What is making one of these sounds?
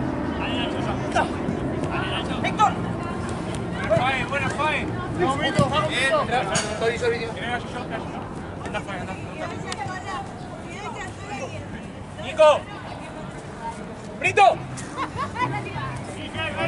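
Men shout to each other across an open pitch.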